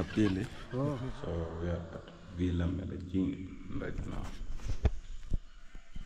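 A second man talks close to the microphone.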